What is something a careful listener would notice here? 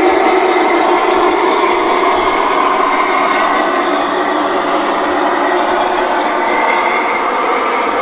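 Small wheels click and rattle over model rails.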